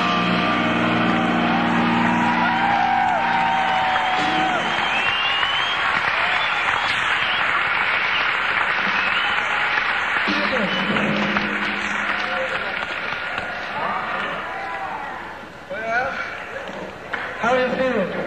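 An electric guitar plays.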